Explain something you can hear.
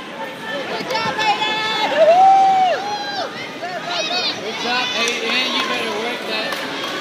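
Children shout and call out loudly nearby.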